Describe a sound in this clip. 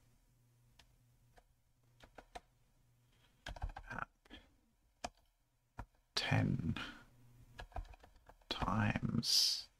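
Keys clack on a keyboard.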